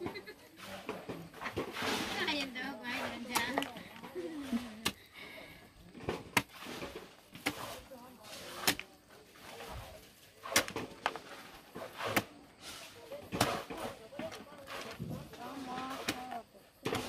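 A metal digging bar thuds and scrapes into hard soil again and again.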